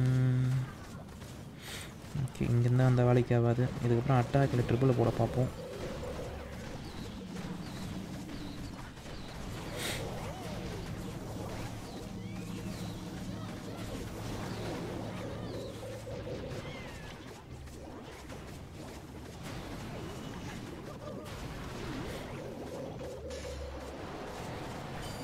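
Video game battle effects crackle and boom steadily.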